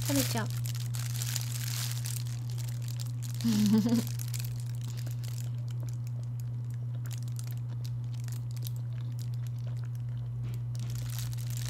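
A young woman bites and chews food.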